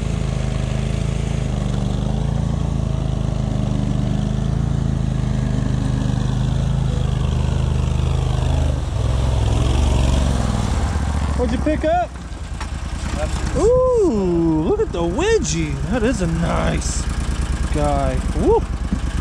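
An amphibious vehicle's engine drones steadily up close.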